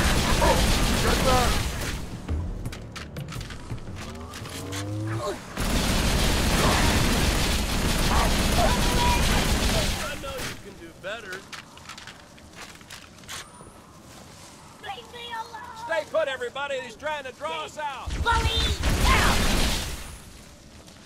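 Twin energy pistols fire rapid buzzing bursts.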